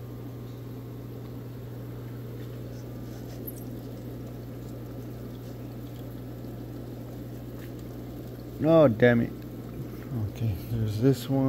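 Aquarium pumps hum steadily.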